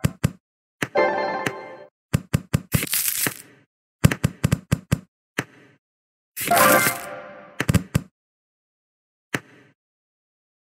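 Game pieces pop and clatter with quick bright clicks.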